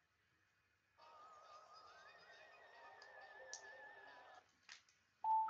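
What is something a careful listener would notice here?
Bright electronic game music plays through a television speaker.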